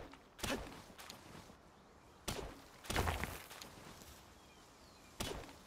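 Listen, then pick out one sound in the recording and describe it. A pickaxe strikes rock with heavy, crunching blows.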